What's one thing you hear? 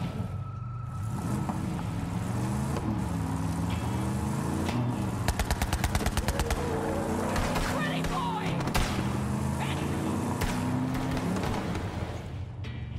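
A buggy engine roars and revs steadily.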